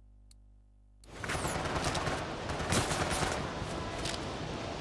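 Loud game action noise rumbles and crackles steadily.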